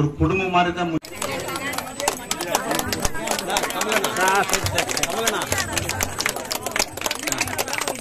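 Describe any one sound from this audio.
A crowd of men chatters loudly close by.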